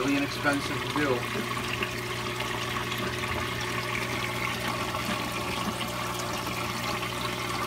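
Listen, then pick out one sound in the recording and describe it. Water bubbles and splashes steadily.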